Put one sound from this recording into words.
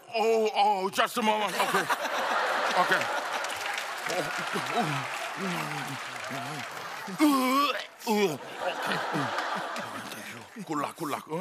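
An audience laughs loudly.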